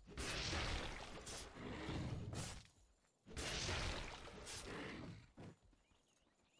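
Fight sound effects clash and burst in loud surges.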